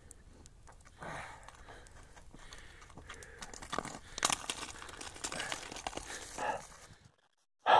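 Loose stones scrape and clatter as a person climbs over rocks.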